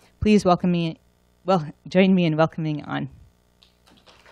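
A young woman speaks into a microphone.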